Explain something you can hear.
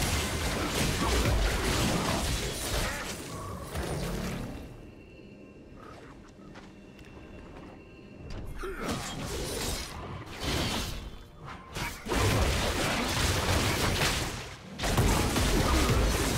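Game spell effects and combat sounds crackle and clash.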